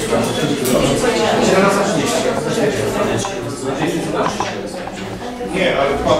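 A middle-aged man talks calmly nearby.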